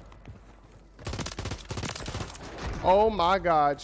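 Rapid gunshots crack in a quick burst.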